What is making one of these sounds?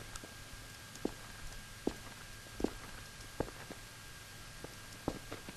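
Footsteps tap on a hard floor at an even pace.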